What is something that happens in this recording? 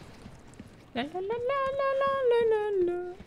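A young woman hums a drawn-out tune close to a microphone.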